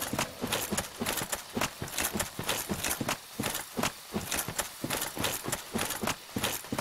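Armoured footsteps thud quickly over soft ground.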